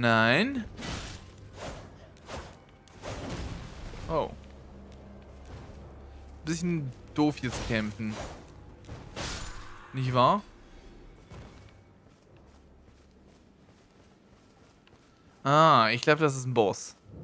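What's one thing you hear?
Armoured footsteps thud on rock.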